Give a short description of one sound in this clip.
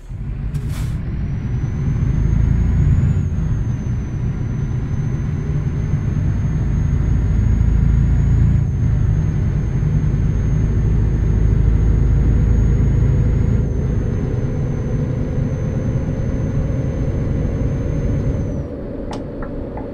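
A truck engine rumbles steadily as the truck drives along.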